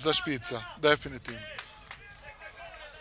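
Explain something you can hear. Hands clap loudly in quick bursts.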